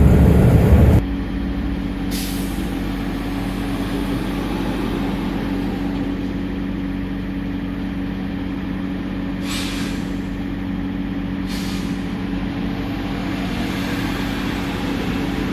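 A car engine idles with a quiet, low hum.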